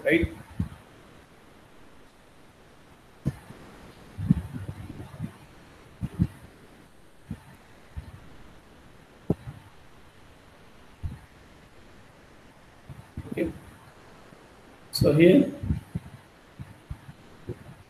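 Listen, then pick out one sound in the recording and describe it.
A man speaks calmly and haltingly through an online call.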